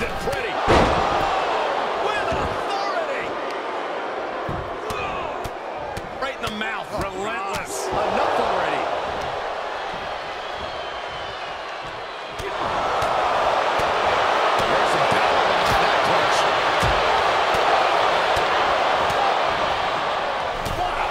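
A large crowd cheers and roars in a big echoing arena, swelling louder partway through.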